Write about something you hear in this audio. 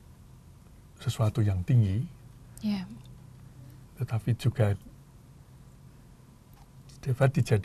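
An elderly man speaks calmly and thoughtfully into a close microphone, with pauses.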